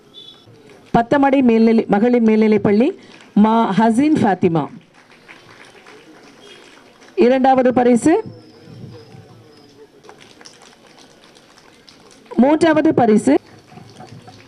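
A woman announces through a loudspeaker.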